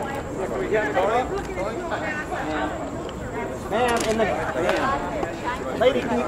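A crowd of men and women chatter together nearby.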